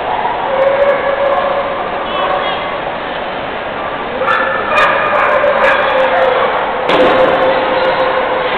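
A crowd murmurs and chatters throughout a large echoing hall.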